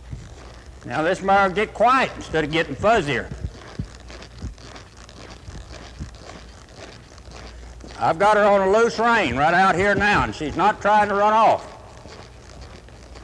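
A horse's hooves thud softly on loose dirt at a lope.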